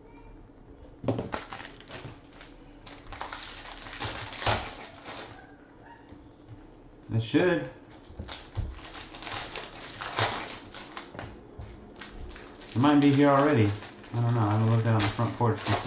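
Plastic wrapping crinkles and rustles as hands tear at it.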